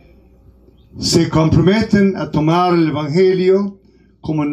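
An elderly man speaks calmly and slowly through a microphone.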